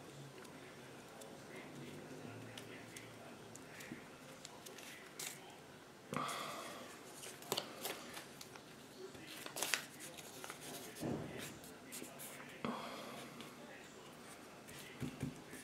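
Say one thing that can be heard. A brush dabs and scrapes on paper.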